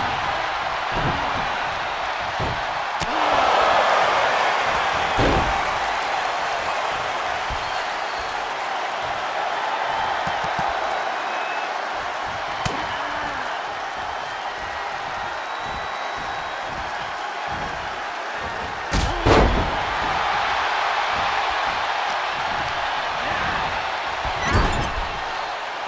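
Heavy thuds of bodies slamming onto a wrestling mat ring out now and then.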